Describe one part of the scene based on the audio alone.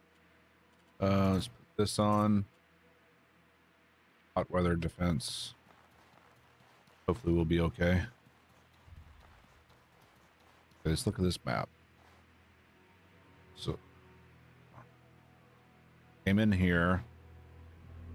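A man talks calmly into a close microphone, in short bursts.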